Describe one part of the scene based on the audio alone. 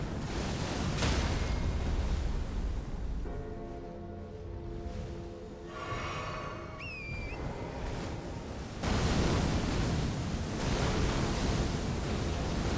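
Icy blasts whoosh and crash.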